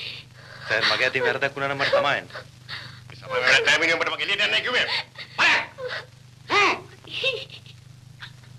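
A young woman speaks, pleading and crying out.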